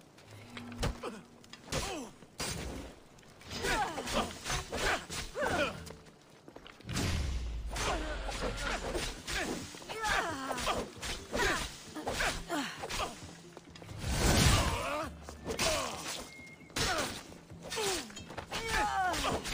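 Swords and weapons clash and strike in a fight.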